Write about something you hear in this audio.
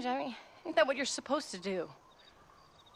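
A woman speaks softly and earnestly, close by.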